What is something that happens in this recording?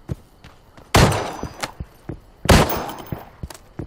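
A pistol fires two loud shots that echo briefly.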